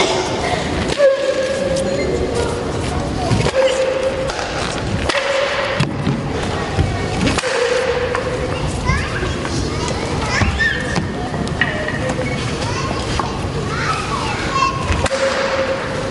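Wooden boards crack sharply as karate fighters break them with strikes.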